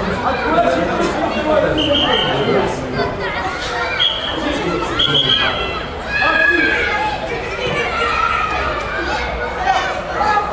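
A crowd of young men and boys chatters and shouts outdoors.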